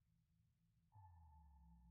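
A loud electronic creature cry rings out suddenly.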